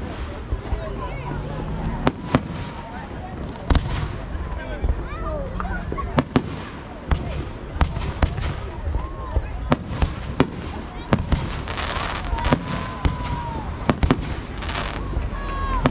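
Firework rockets whistle and hiss as they shoot upward.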